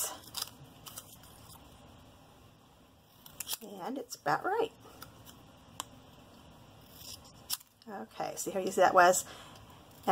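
Small scissors snip through paper with short crisp clicks.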